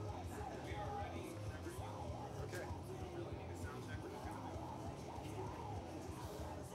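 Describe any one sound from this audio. A young woman sings into a microphone through loudspeakers.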